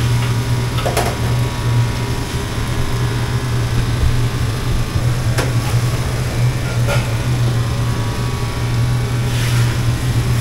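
A metal ladle clanks against a wok.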